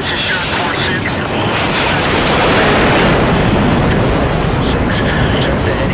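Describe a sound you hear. A jet fighter roars past close by.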